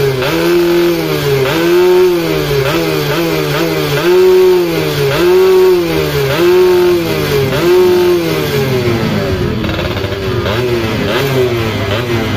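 A small motorbike engine revs up and down in short, repeated bursts close by.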